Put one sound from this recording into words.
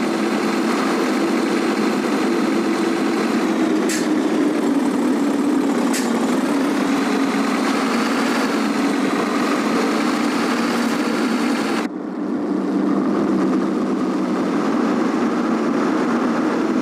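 A heavy truck engine drones steadily while driving.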